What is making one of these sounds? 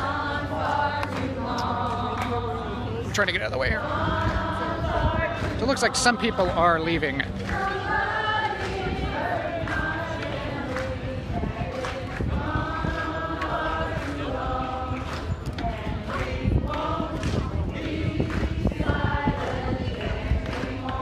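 A crowd of men and women chat outdoors nearby.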